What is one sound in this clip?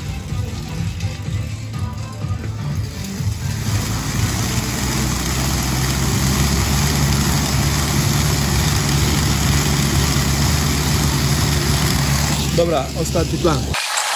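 An exercise bike's fan whirs and whooshes, growing louder as the pedalling speeds up.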